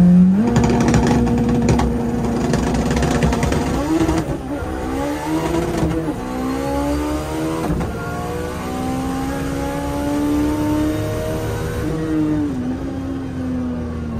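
A car engine roars loudly from inside the cabin, revving up through the gears as the car accelerates hard.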